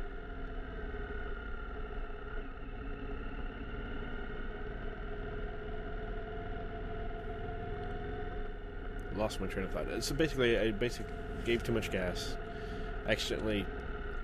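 Tyres rumble over rough pavement.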